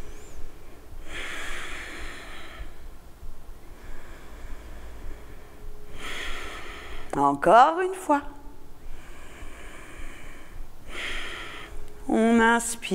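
A woman breathes out slowly and audibly.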